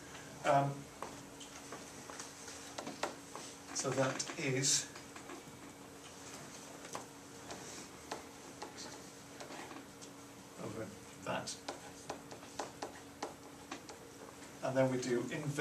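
A man speaks calmly, pausing often.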